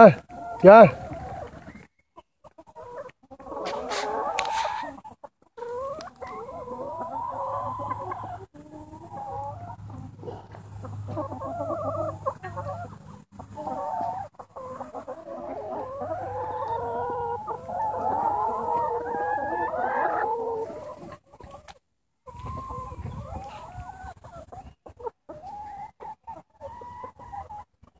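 Hens cluck and squawk close by, outdoors.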